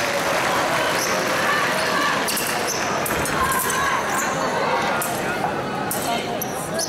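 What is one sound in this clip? Fencers' feet stamp and squeak on a floor.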